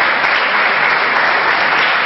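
An elderly man claps his hands.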